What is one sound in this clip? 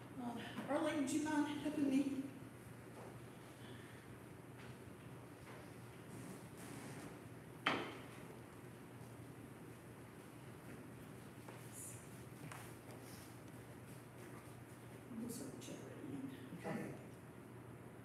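A woman talks quietly nearby.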